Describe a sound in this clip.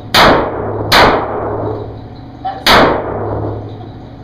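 A pistol fires sharp, loud shots that echo down a long tunnel.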